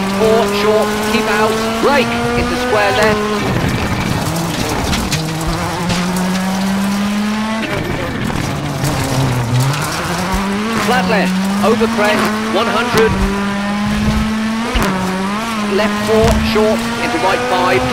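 Tyres crunch and skid on gravel.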